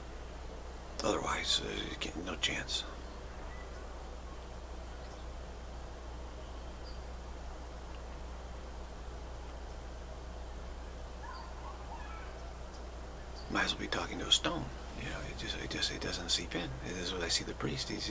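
A middle-aged man speaks calmly and close to a microphone.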